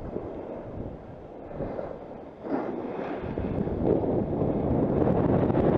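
A snowboard scrapes and hisses over packed snow close by.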